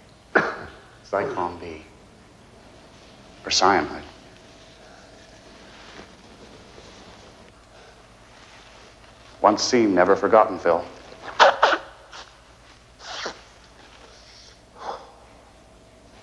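A younger man speaks tensely nearby.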